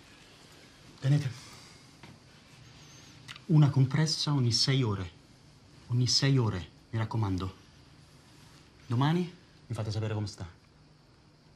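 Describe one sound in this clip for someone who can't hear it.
A middle-aged man speaks calmly and firmly, close by.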